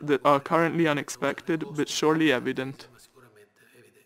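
A middle-aged man speaks calmly and close up.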